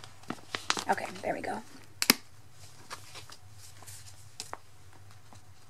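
Plastic binder sleeves crinkle and rustle as pages are handled.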